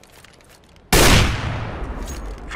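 A rifle fires a single loud shot that rings out.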